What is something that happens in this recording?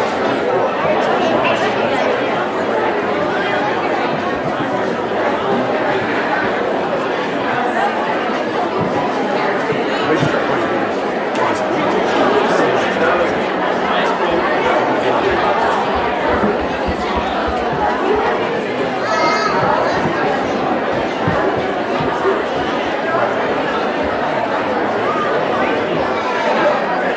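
A crowd of people chatters steadily in a large echoing hall.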